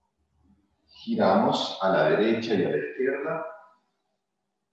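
A man speaks calmly into a microphone, as if over an online call.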